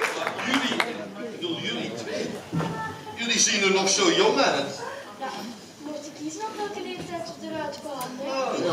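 A woman speaks loudly and with animation from a stage across a large hall.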